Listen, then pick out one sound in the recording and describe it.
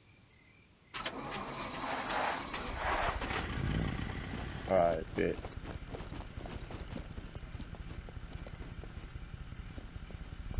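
A quad bike engine rumbles as it drives along a road.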